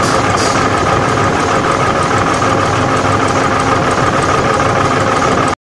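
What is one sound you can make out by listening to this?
A machine hums and rattles loudly and steadily.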